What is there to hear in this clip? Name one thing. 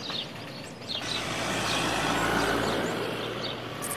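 A truck engine rumbles as it drives past.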